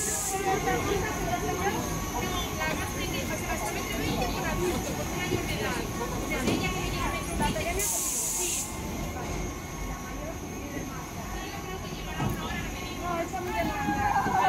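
A ride's machinery rumbles steadily.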